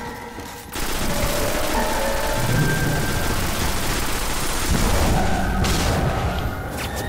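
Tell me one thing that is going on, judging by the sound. A heavy gun fires in loud blasts.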